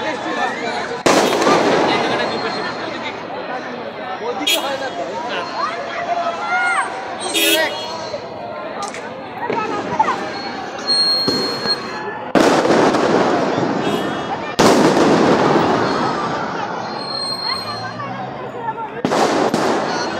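Fireworks bang loudly outdoors and echo off buildings.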